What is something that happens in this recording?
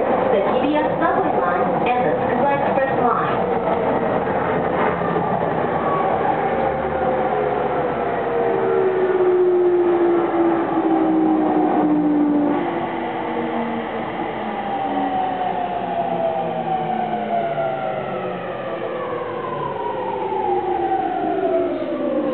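Train motors whine, falling in pitch as the train slows.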